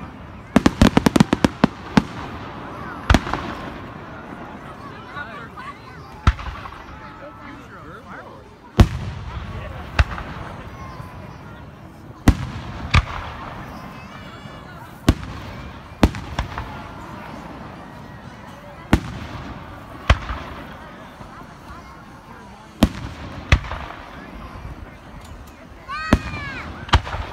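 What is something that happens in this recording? Fireworks burst with loud booms that echo outdoors.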